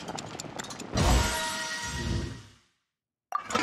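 A bright chime rings out for a success.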